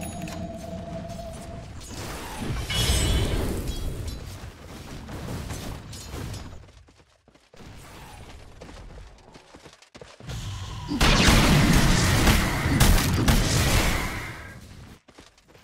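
Magic blasts and weapon clashes of a fantasy battle burst out loudly.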